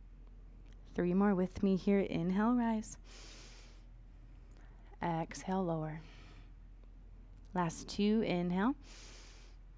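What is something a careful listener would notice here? A woman speaks calmly and slowly in short phrases, close to a microphone.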